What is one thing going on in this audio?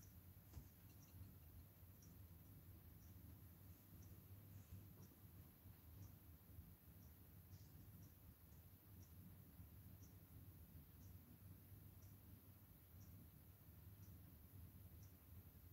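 A paintbrush dabs softly on a palette.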